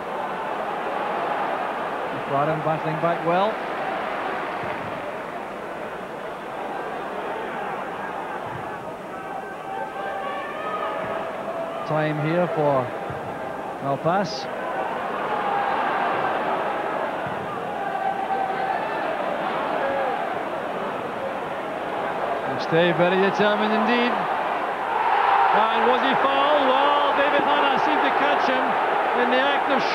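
A large stadium crowd roars steadily outdoors.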